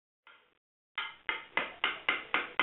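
A hammer taps rapidly on sheet metal.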